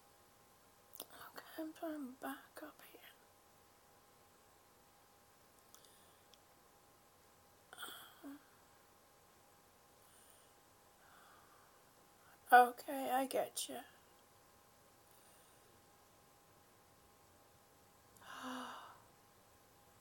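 An older woman speaks calmly in short bursts, close to a microphone.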